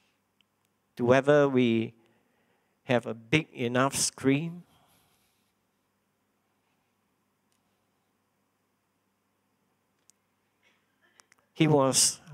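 A man speaks slowly and deliberately into a microphone, with long pauses.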